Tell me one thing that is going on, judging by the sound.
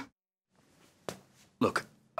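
A man speaks briefly, close to the microphone.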